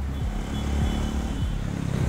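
A motorcycle engine roars as it passes by.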